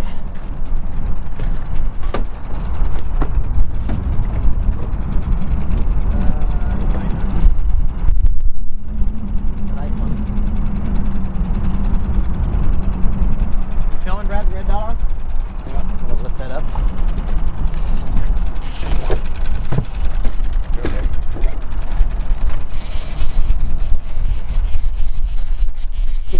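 A small outboard motor runs at trolling speed.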